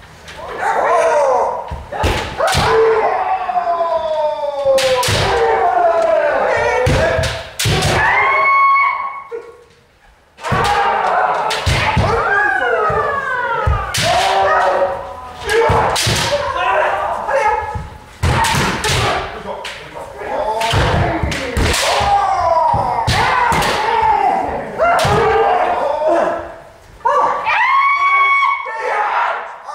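Bamboo swords strike armour with sharp cracks.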